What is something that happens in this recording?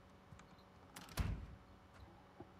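A box thumps down onto a table.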